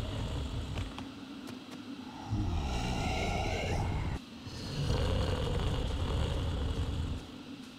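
Light footsteps patter quickly across soft ground.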